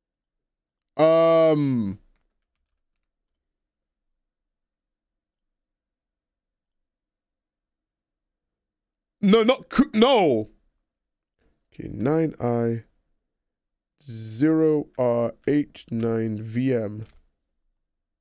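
A young man speaks with animation, close to a microphone, in short bursts.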